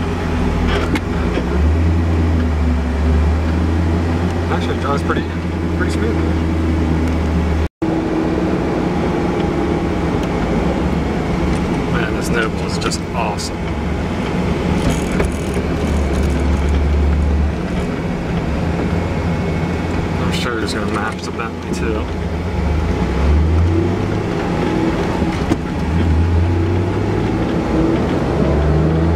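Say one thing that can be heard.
A car engine hums and drones steadily from inside the cabin, rising and falling as the car speeds up and slows.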